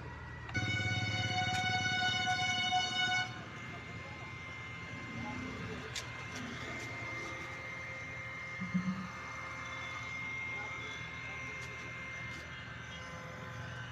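A heat gun whirs steadily.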